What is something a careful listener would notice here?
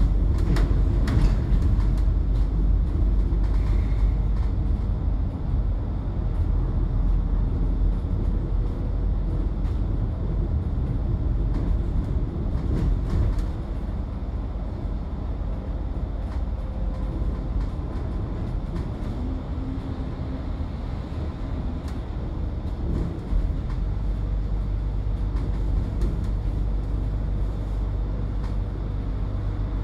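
A vehicle's engine rumbles steadily as it drives along.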